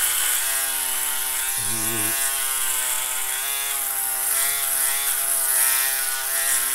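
An electric trimmer buzzes steadily up close.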